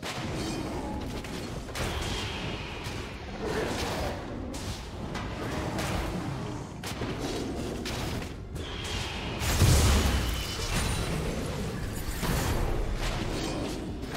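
Game combat sounds clash and burst with spell effects.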